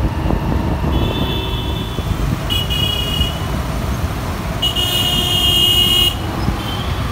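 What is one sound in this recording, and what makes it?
Vehicle horns honk in short bursts.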